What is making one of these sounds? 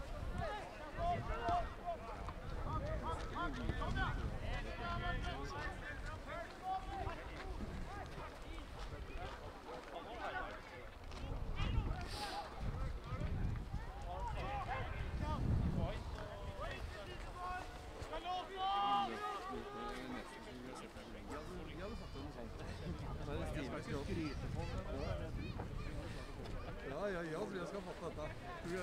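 Football players shout across an open pitch.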